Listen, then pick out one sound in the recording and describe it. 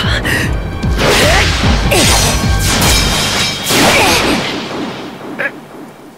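Swords clash with a loud ringing impact.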